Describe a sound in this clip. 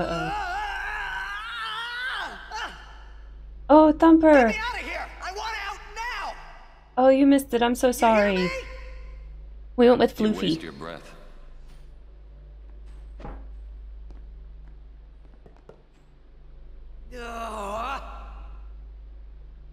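A young woman talks into a microphone with animation.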